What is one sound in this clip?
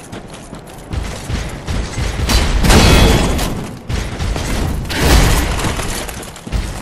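Metal weapons clash and swish in a fight.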